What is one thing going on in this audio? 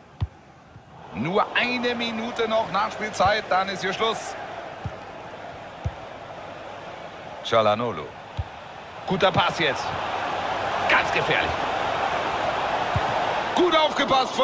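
A large stadium crowd roars and cheers, swelling louder.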